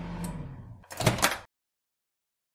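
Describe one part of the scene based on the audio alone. A toy microwave door clicks open.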